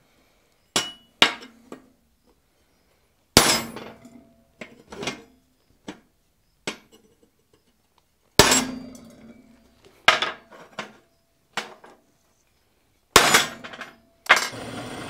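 A hammer strikes metal with sharp ringing blows.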